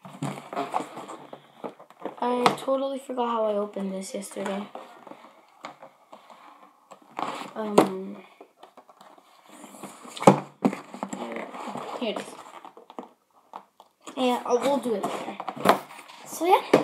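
A cardboard box rattles and bumps as it is handled.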